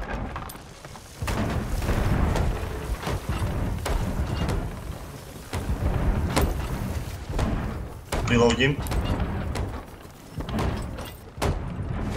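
A hammer knocks on wood in quick blows.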